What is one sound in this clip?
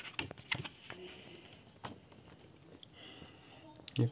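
A hand turns glossy magazine pages.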